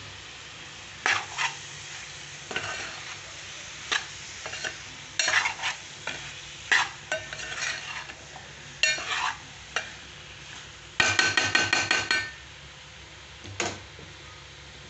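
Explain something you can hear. A metal spoon scrapes and clinks against a metal pan.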